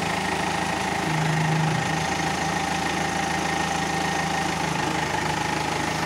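A diesel engine idles with a steady low rumble nearby.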